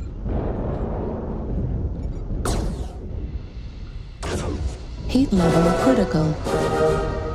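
Energy weapons fire in short bursts.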